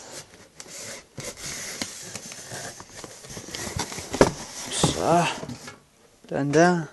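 Cardboard flaps rustle and scrape.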